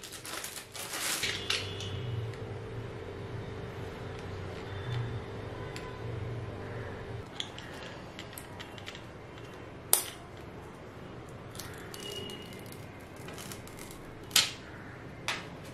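Small plastic pieces click against each other and a hard surface.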